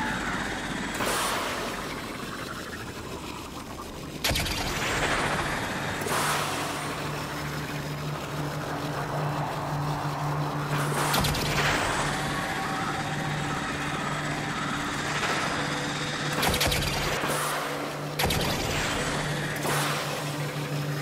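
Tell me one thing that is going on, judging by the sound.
Sudden whooshes of a spacecraft boosting sweep past.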